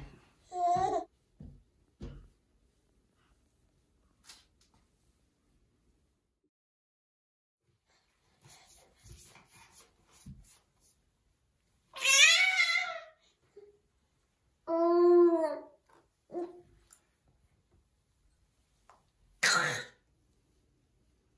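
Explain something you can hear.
A baby's hands pat against a mirror.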